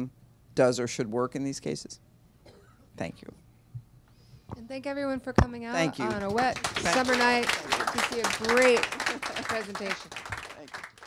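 A woman speaks animatedly into a microphone.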